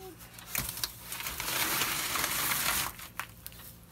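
A plastic tray scrapes across a wooden board.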